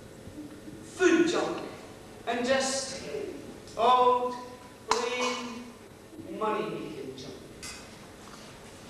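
A young man declaims loudly in a hall with a slight echo.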